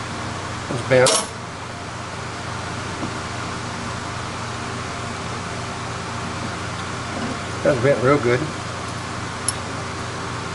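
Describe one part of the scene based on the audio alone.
Small metal parts clink together under a hand.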